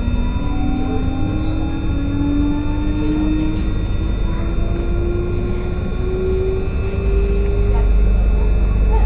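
An electric train motor whines, slowly rising in pitch.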